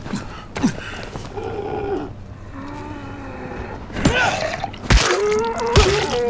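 A creature snarls and growls close by.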